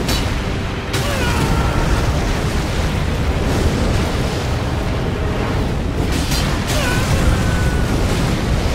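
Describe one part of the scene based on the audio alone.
A huge dragon roars.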